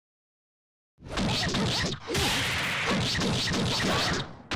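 Loud slashing whooshes and crackling blasts ring out in a video game fight.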